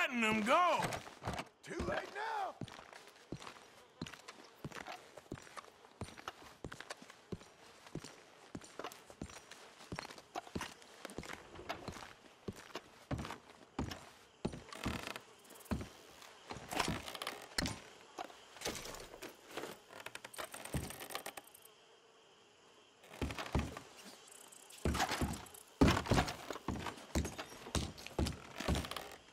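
Boots thud on wooden floorboards.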